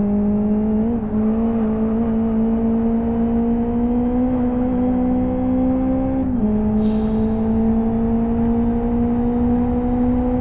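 A car engine hums steadily at high revs, rising slowly in pitch.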